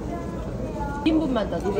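A young woman speaks briefly and softly, close by.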